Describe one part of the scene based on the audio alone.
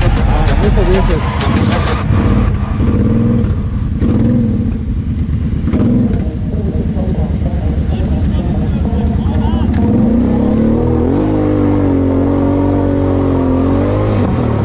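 A quad bike engine revs loudly up close.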